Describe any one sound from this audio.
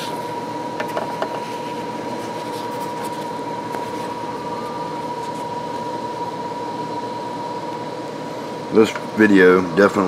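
A paper towel rustles softly.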